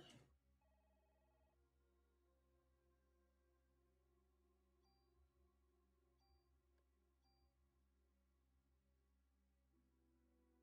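Short electronic beeps sound from a game menu.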